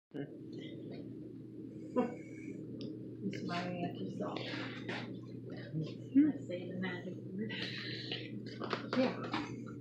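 An elderly woman talks cheerfully nearby.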